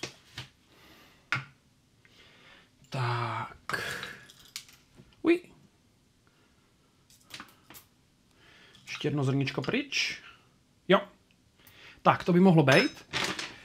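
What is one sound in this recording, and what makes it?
Dishes and utensils clink and knock on a counter.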